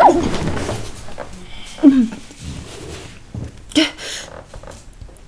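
A young woman sobs and sniffles close by.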